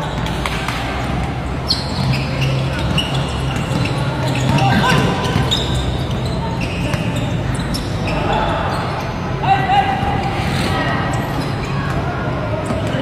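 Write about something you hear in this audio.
A basketball bounces on the hard court.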